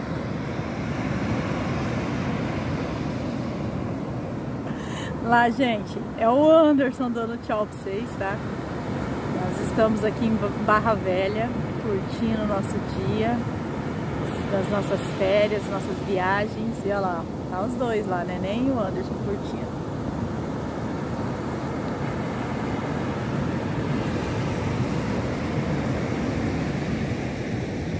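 Waves crash and wash onto a beach with a steady roar.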